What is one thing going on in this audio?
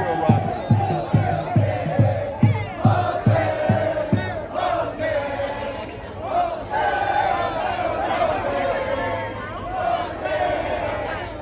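A large crowd chants and cheers loudly all around.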